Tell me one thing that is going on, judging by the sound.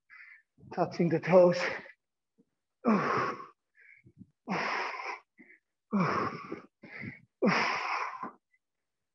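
A man speaks calmly in short bursts, close by, in an echoing room.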